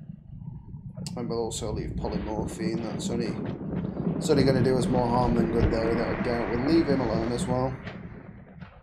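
A young man talks animatedly and close to a microphone.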